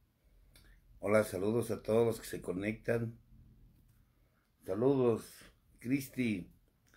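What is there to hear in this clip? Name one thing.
A middle-aged man speaks calmly and close by, in short bursts with pauses.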